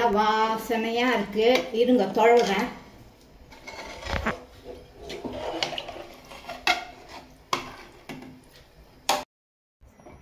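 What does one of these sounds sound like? A metal ladle scrapes and clinks against a metal pot while stirring.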